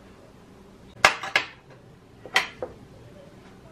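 A wooden tray knocks against a hard countertop.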